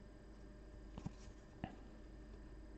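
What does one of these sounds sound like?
A small plastic figure knocks twice against a table.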